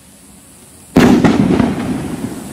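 A firework bursts with a loud boom.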